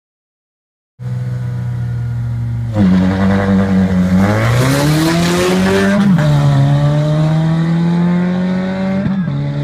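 Racing car engines rev hard and climb in pitch as they shift gears.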